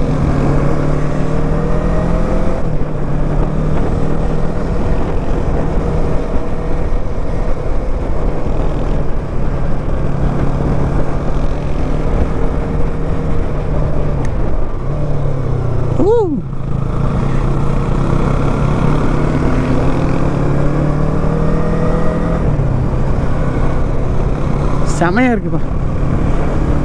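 A motorcycle engine hums steadily, its pitch rising and falling with speed.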